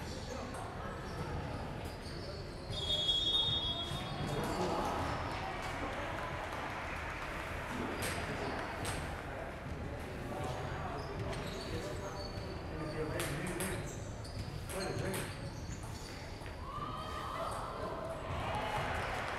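Several men talk in the background of the hall.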